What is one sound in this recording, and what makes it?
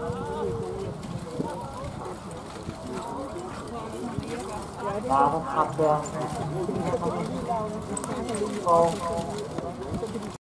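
A horse-drawn carriage trots past on grass at a distance.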